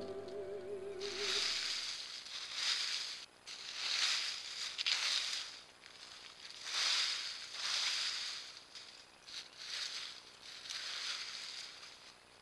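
Dry leaves rustle and crunch under a large cat's paws.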